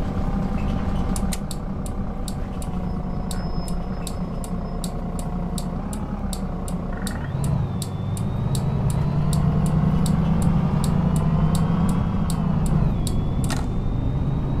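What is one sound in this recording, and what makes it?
A turn signal ticks rapidly.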